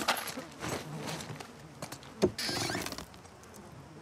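A drawer slides open with a wooden scrape.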